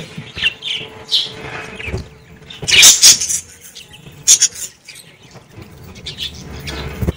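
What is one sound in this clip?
Budgies chirp and chatter close by.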